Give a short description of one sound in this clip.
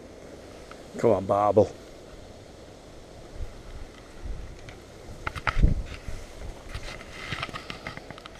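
Grass rustles and swishes as a fishing rod is moved through it.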